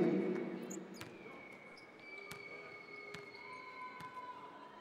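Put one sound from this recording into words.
A basketball bounces on a hardwood court in a large arena.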